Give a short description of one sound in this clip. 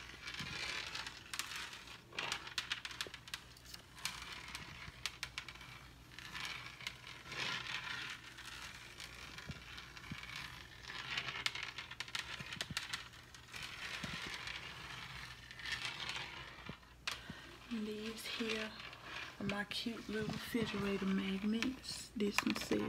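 Fingertips tap lightly on a hard surface.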